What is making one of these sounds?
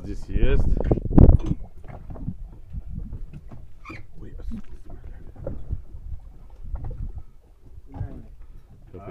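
Water laps gently against a boat's hull.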